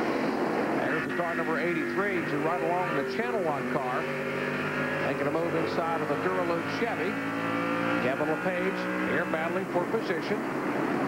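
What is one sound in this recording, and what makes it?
A race car engine roars close up from inside the car.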